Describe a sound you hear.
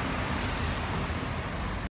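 A motorcycle engine hums as it rides by.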